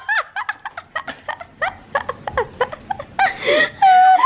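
A young woman laughs excitedly close by.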